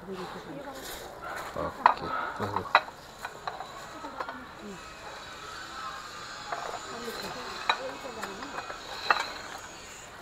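Plates and bowls clink.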